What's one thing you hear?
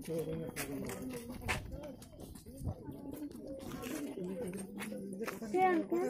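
Several people talk nearby as they walk.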